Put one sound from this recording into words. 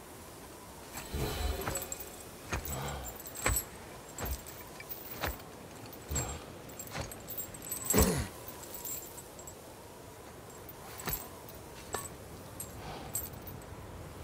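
Heavy footsteps thud and scrape over rock.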